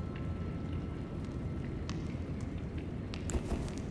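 A torch flame crackles.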